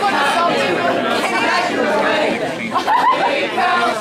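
Young women laugh together close by.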